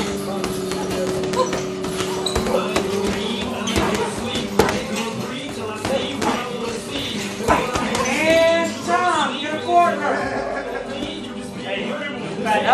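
Gloved punches thump and smack in quick bursts.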